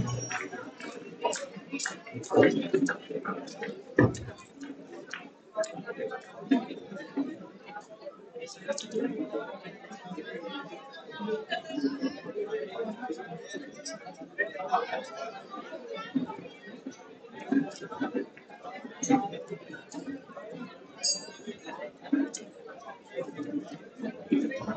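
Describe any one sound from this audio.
A crowd of children and adults chatters loudly in a large echoing hall.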